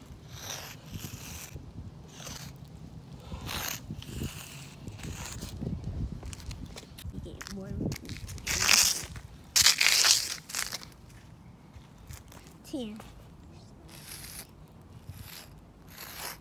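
Chalk scrapes across rough pavement.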